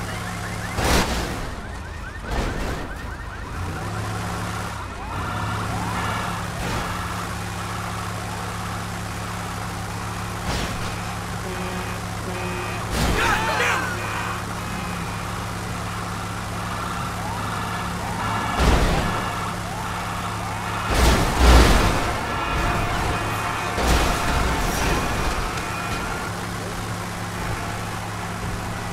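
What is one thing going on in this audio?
A heavy vehicle's engine rumbles steadily as it drives.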